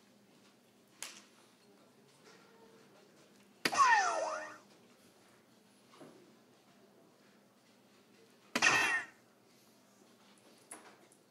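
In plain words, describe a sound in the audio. Darts thud into an electronic dartboard one after another.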